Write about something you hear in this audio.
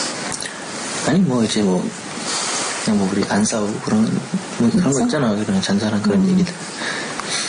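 A second man answers in a low, calm voice.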